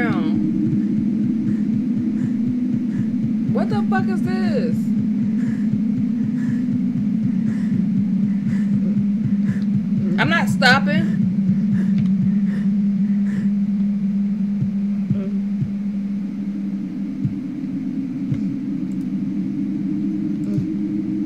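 A low eerie drone hums steadily.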